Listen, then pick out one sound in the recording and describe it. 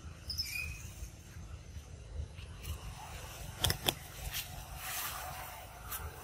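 Dry leaves rustle under a monkey's feet.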